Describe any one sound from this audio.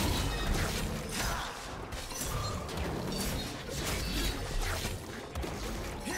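Game spells whoosh and crackle in a fight.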